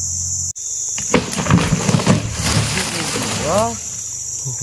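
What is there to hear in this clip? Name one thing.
A heavy log creaks and thuds as it rolls off.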